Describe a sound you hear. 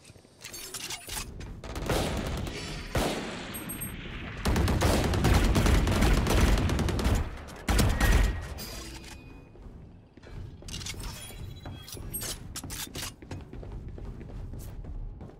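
Rapid gunfire rattles in sharp bursts.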